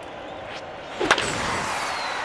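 A bat cracks sharply against a ball.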